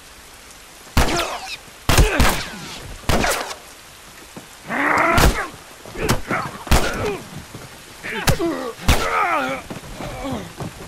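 Heavy blows thud during a scuffle.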